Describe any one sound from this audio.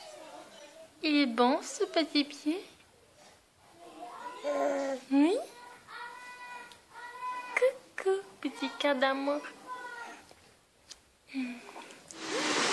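A baby coos and giggles up close.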